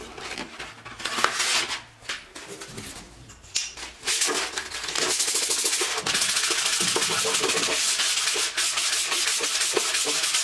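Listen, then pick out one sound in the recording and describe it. Sandpaper rubs back and forth across wood with a steady scratching.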